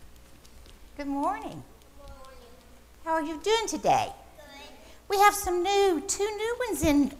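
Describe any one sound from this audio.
Young children sing together in a large echoing room.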